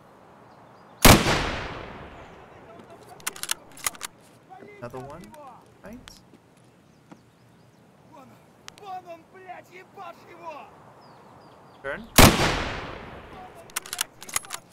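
A rifle fires two loud shots that echo and fade.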